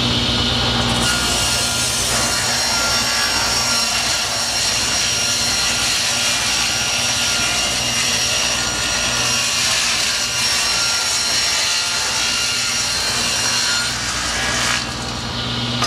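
A table saw blade cuts through wood with a rough hiss.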